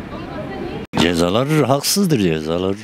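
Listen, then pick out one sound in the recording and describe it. An elderly man speaks with animation into a microphone, up close.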